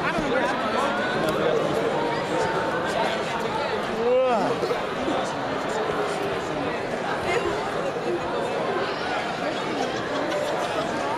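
A large crowd chatters loudly in an echoing hall.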